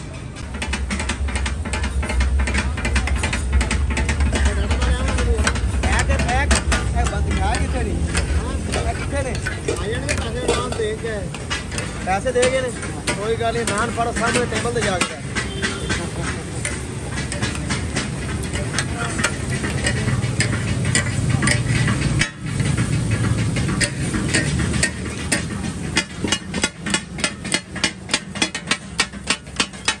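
Food sizzles loudly on a hot griddle.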